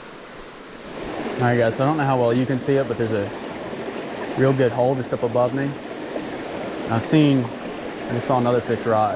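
A shallow stream rushes over rocks nearby.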